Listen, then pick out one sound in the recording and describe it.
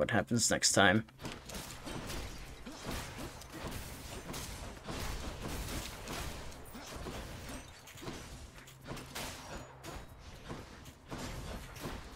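Game combat sounds clash and crackle.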